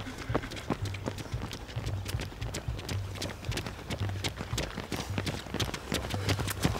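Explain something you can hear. Running shoes patter on a paved path.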